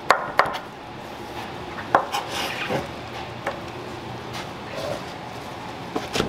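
Sliced cucumber strips rustle as they are scooped into a metal tray.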